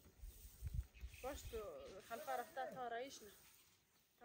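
A broom sweeps across grain.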